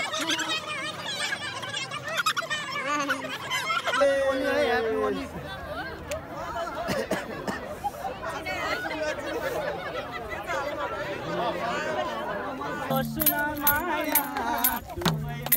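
A crowd of men, women and children chatter and laugh outdoors.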